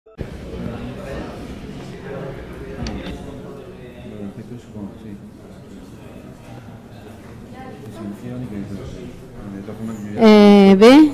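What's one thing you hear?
People chatter quietly in a large echoing hall.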